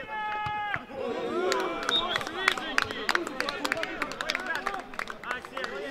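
Young men cheer loudly together.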